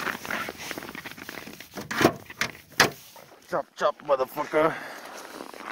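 Plastic parts crack and snap.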